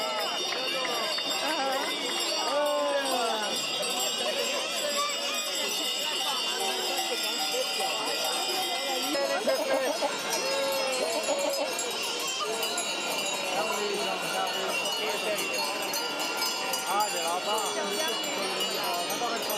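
Goats bleat as they walk past.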